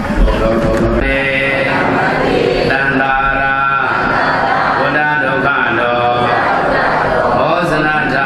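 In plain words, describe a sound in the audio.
A man chants steadily into a microphone through a loudspeaker.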